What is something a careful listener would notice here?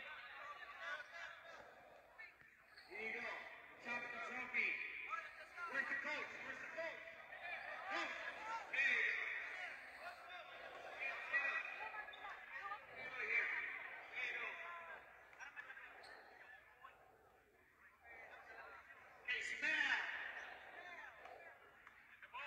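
A crowd of young men chatter and cheer loudly in a large echoing hall.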